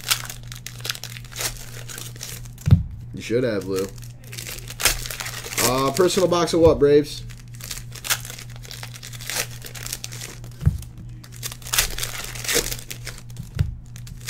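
Foil card packs crinkle and rustle as hands tear them open.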